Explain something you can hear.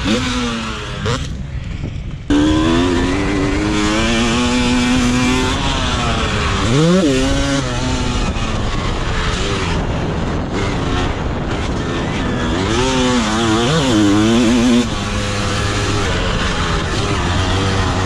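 A dirt bike engine roars close by, revving up and down.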